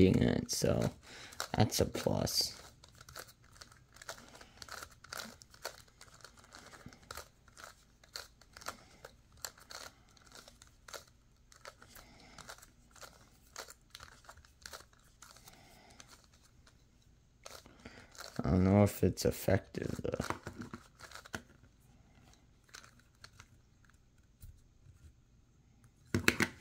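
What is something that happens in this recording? Plastic puzzle pieces click and clack as a puzzle is twisted by hand.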